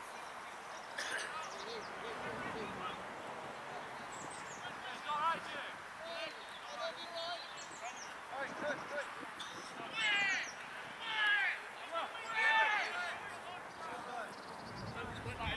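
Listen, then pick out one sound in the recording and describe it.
Men shout to each other across an open playing field in the distance.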